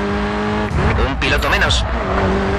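Tyres screech as a car skids and slides.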